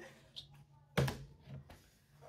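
A plastic bottle knocks down onto a wooden table.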